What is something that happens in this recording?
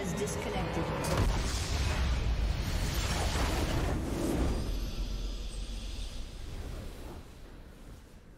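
A loud magical blast bursts and rumbles, then fades away.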